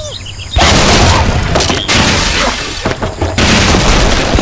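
Wooden blocks crash and clatter as a structure collapses.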